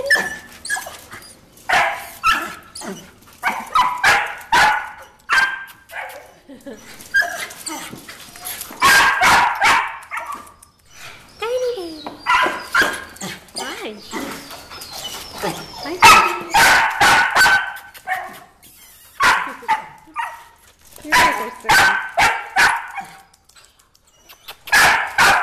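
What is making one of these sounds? Puppies yip and whine excitedly close by.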